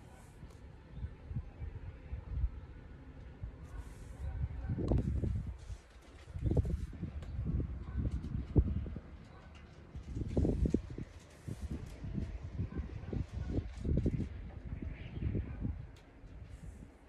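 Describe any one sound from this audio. Soft fabric and fur rustle and rub close by.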